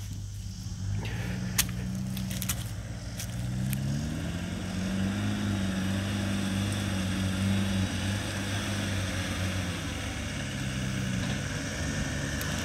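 Tyres crunch over rocks and dirt.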